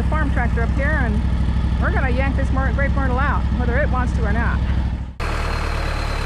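A mower engine hums steadily close by.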